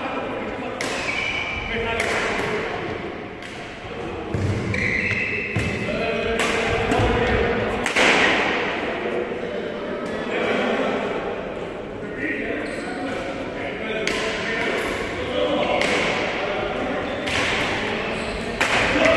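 Shuttlecocks are struck with sharp racket pops in an echoing hall.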